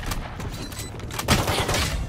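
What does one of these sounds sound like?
Rapid gunshots crack nearby.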